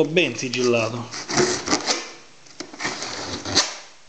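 Hands rub and tap against a cardboard box.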